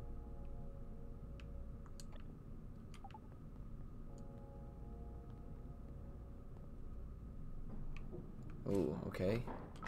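Video game music plays softly with low steady tones.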